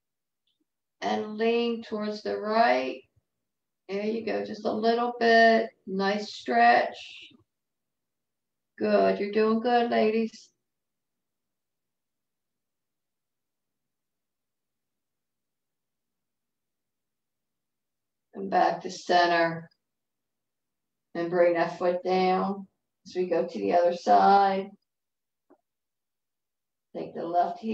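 An elderly woman speaks calmly in short bursts over an online call.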